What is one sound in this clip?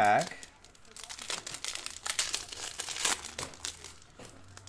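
A foil wrapper crinkles and tears in hands.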